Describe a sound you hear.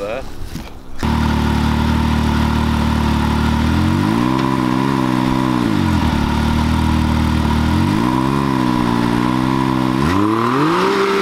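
An off-road vehicle's engine idles close by and revs up and down several times.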